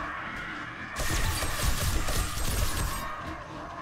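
An electric weapon crackles and zaps in loud bursts.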